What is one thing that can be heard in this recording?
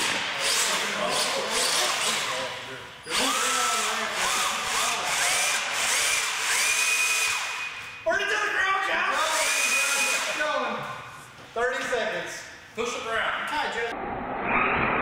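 A small electric motor whines, revving up and down.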